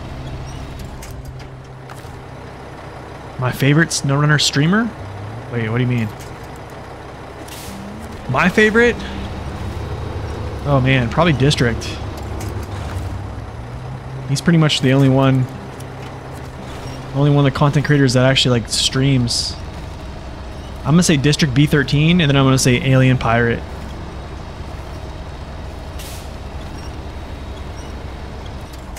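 A heavy truck engine rumbles low and steady as it crawls over rough ground.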